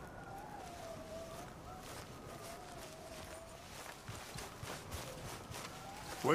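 Footsteps swish and rustle through tall grass.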